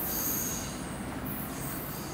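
A train rumbles faintly as it approaches from a distance.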